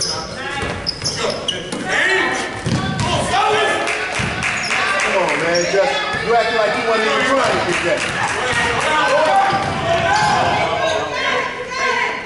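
Spectators talk and shout nearby.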